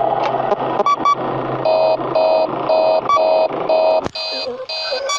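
An electronic alarm beeps in a quick, repeating pattern.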